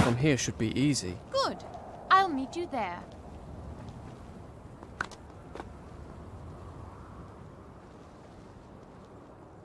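Soft footsteps shuffle along a stone ledge.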